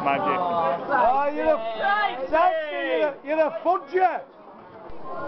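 A man nearby calls out loudly in a drawn-out voice.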